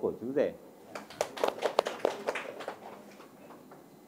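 A small group of people clap their hands.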